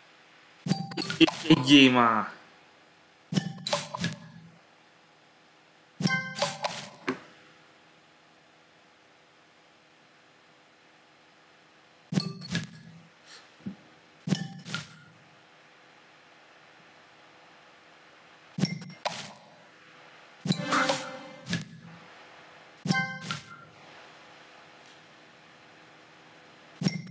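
A mobile puzzle game plays bright chiming sound effects as pieces are matched.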